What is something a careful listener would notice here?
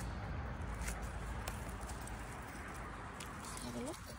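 Dry pine needles rustle under a hand.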